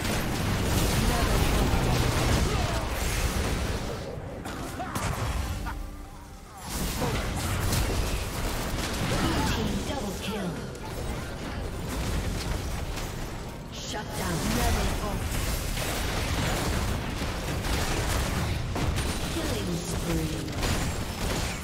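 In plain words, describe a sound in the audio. Video game spell effects crackle and boom in a fight.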